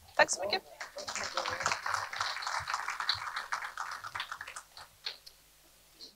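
A man speaks to an audience.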